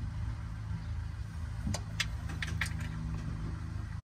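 A ratchet wrench clicks as a bolt is turned.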